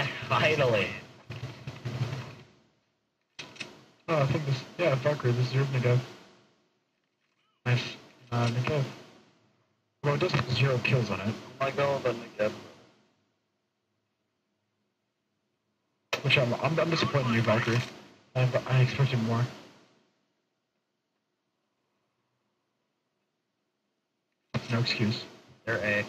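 A man talks with animation into a close microphone, in bursts with pauses.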